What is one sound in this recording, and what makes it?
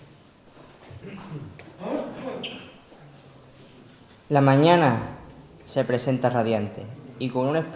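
A young man speaks into a microphone, reading out calmly.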